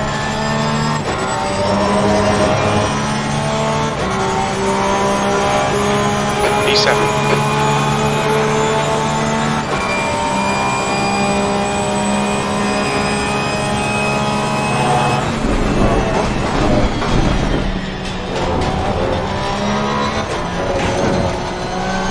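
A racing car engine roars at high revs, shifting gears up and down.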